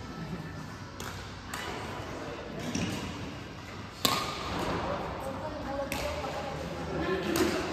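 Rackets strike a shuttlecock with sharp pops in a large echoing hall.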